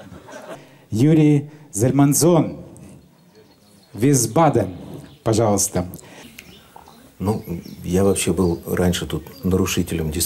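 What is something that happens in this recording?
A middle-aged man speaks into a microphone between songs.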